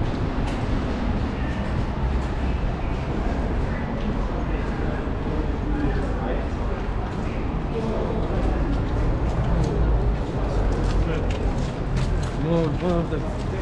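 Footsteps echo on stone under an archway.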